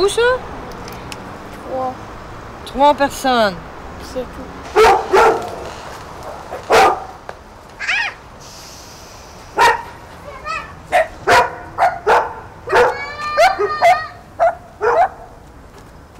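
Young children shout and squeal playfully nearby.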